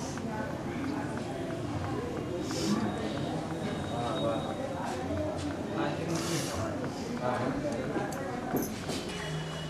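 An elderly woman talks with animation, close by.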